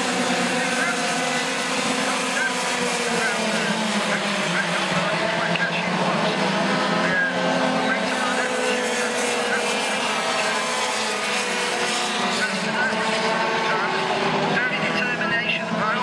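Go-kart engines buzz and whine around a track in the distance.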